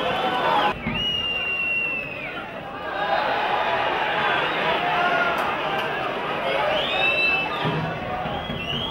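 A large crowd cheers in an open stadium.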